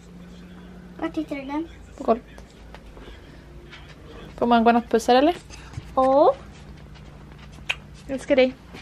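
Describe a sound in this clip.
A young girl talks and giggles close by.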